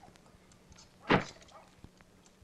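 A door knocks shut.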